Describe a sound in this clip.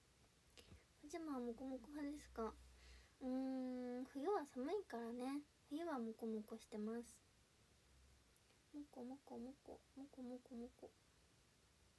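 A young woman speaks close to a microphone in a soft, animated voice.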